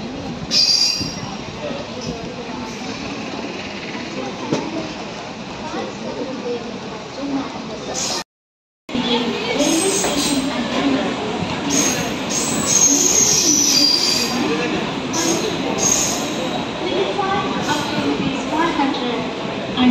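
A train rolls slowly along the tracks with a steady rumble.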